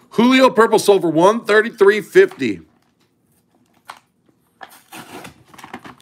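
A plastic wrapper crinkles and tears as it is opened.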